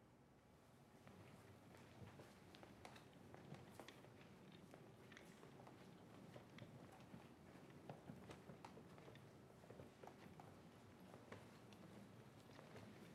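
Suitcase wheels roll over a hard floor.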